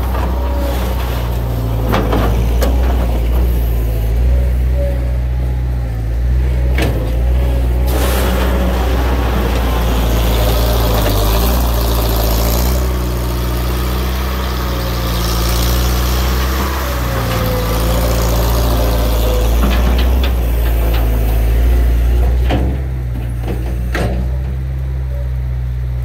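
A skid steer loader's diesel engine rumbles and revs close by.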